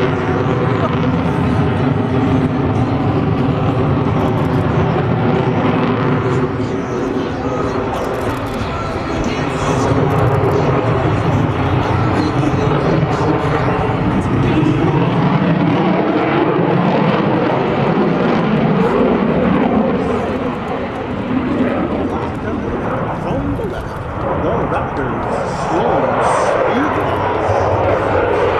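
A jet engine roars loudly as a fighter jet flies overhead.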